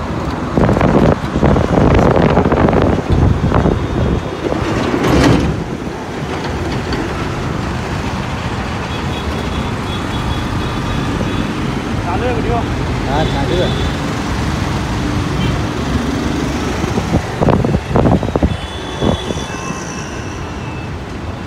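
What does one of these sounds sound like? Traffic rolls by in a steady drone.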